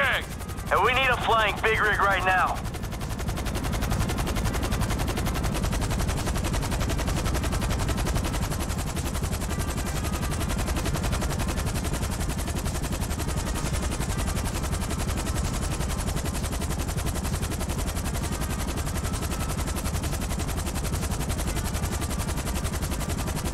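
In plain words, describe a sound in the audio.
A helicopter's rotor drones steadily overhead.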